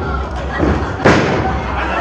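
Bodies slam onto a wrestling ring mat with a loud thud.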